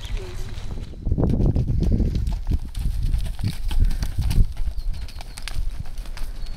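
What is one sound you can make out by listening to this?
Horse hooves thud on dirt.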